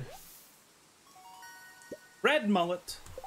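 A short, bright game chime plays as a fish is reeled in.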